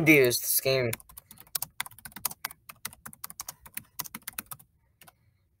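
A keyboard clicks with quick typing.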